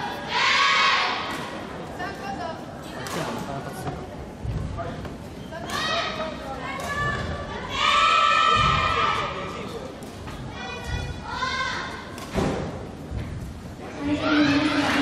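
Young people talk close by in a large echoing hall.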